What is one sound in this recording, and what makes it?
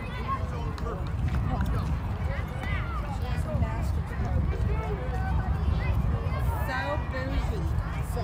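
Young girls call out and chatter across an open field.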